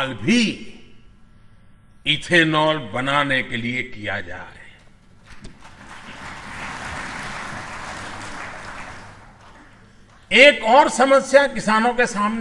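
An elderly man speaks forcefully into a microphone.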